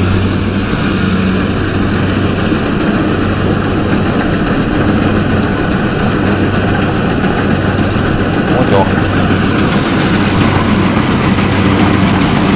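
A combine harvester engine drones steadily nearby.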